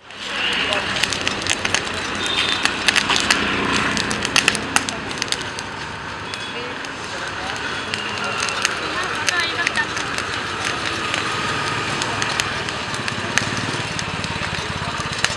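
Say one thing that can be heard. Burning charcoal crackles and pops.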